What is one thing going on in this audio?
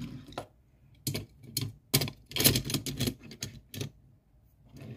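Small toy car wheels roll and clatter on a hard surface.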